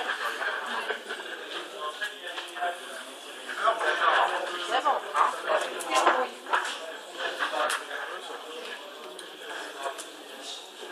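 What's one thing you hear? A room full of young people chatter and talk over one another nearby.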